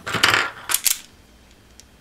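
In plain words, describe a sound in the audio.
Wire strippers snap shut on a wire with a sharp click.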